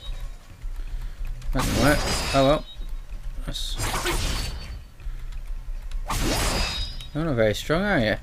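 Blades swish and strike in a fight.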